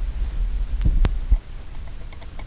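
A record player's tone arm drops onto a record with a soft thump.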